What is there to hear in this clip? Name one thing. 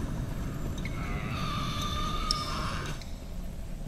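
Sparks crackle and hiss briefly.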